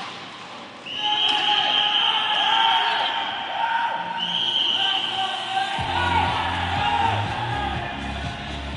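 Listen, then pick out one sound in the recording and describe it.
Young men shout and cheer in celebration in a large echoing hall.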